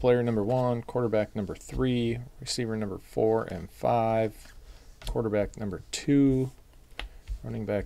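Trading cards flick and slap softly as they are dealt onto a table.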